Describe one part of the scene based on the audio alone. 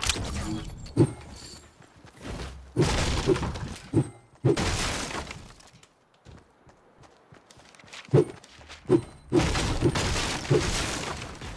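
A pickaxe strikes and breaks objects in a video game.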